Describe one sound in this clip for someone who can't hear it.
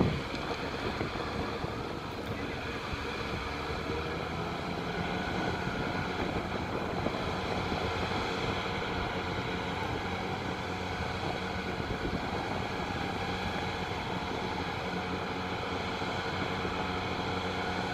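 A car engine runs and revs in the distance.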